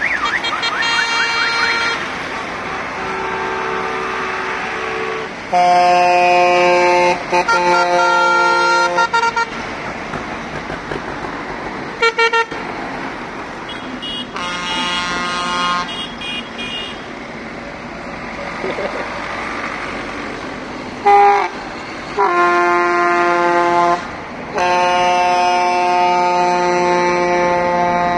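Tractor engines rumble past, one after another.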